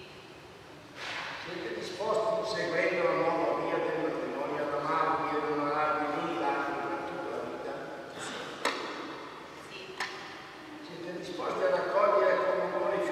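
An elderly man reads out calmly through a microphone in an echoing hall.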